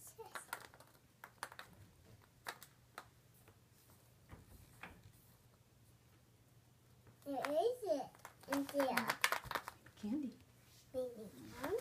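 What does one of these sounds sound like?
Plastic eggs rattle and click in a little girl's hands.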